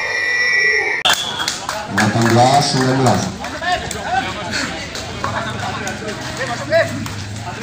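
A crowd of spectators cheers.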